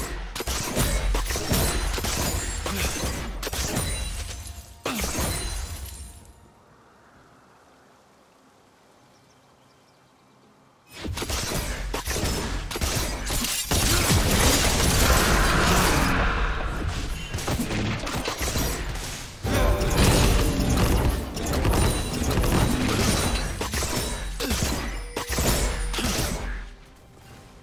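Magic blasts and weapon strikes crackle and clash in a fast game battle.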